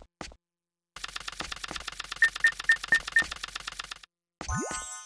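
A rapid electronic rattle plays, like spinning reels.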